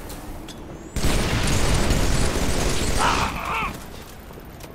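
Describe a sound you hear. A plasma blast bursts with a crackling hiss.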